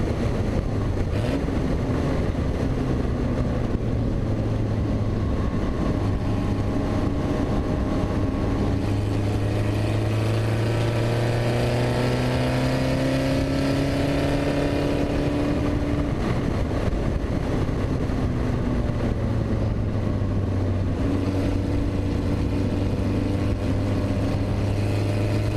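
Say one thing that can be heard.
Wind rushes loudly past an open car.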